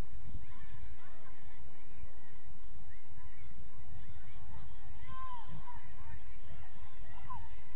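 Young players and spectators shout faintly in the distance.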